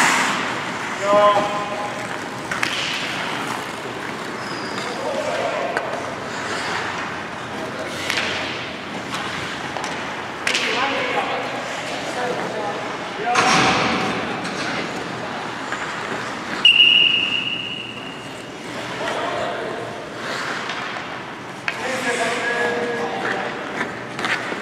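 Men call out to each other across the rink.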